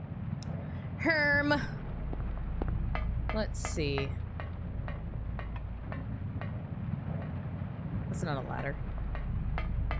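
A young woman speaks casually into a microphone.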